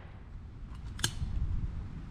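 A shotgun snaps open with a sharp metallic click.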